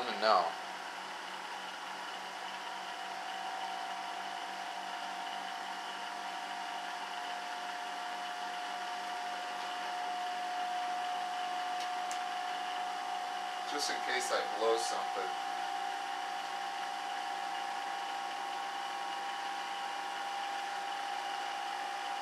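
An electric motor whines with a steady high hum.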